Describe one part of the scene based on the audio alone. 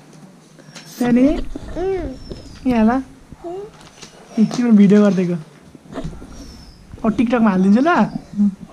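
A young child speaks in a high voice close by.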